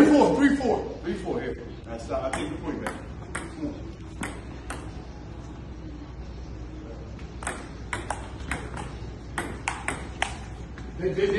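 A ping pong ball clicks back and forth on paddles and a table in a quick rally.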